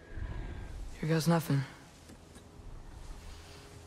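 A boy speaks softly and close by.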